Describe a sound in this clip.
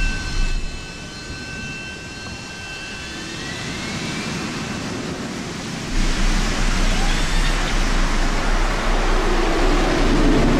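A jet aircraft's engines roar loudly, building in power.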